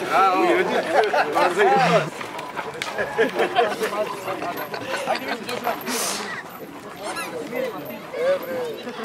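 A crowd of people chatter outdoors in the background.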